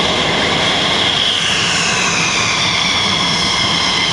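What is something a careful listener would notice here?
A jet engine's high whine drops in pitch as a fighter jet taxis past.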